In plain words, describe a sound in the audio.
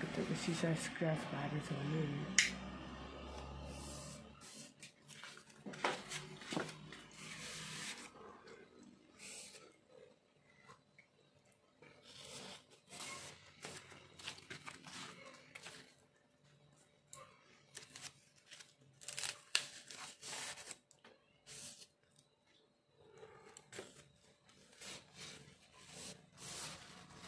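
Plastic packaging crinkles and rustles as hands handle it.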